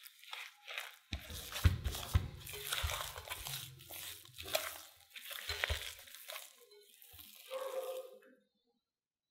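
A spatula squelches through thick, wet batter.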